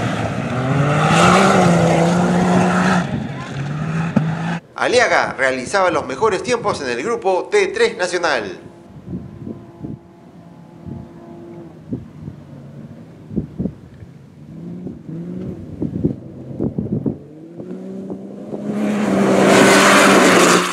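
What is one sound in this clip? An off-road buggy engine roars and revs close by.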